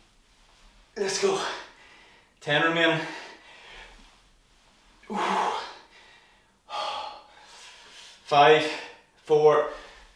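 A man grunts with effort.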